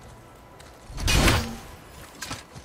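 An axe strikes with a sharp thud.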